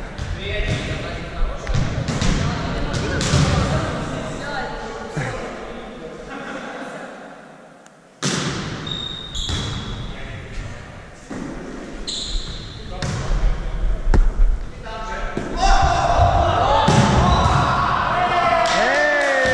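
Young players call out and shout to each other.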